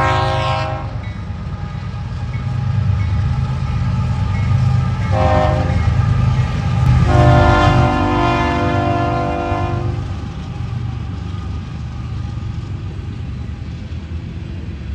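Freight car wheels clatter and squeal on the rails.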